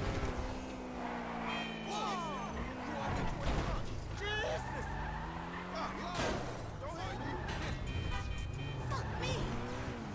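Tyres screech on the road as a car skids.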